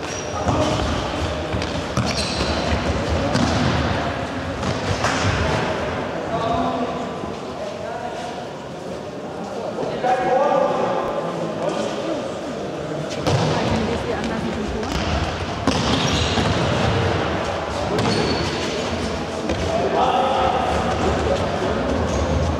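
Young boys shout to each other in a large echoing hall.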